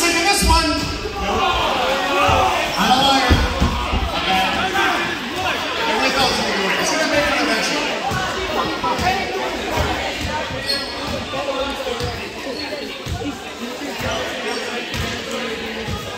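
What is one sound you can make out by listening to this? A crowd of spectators chatters and cheers loudly in an echoing gym.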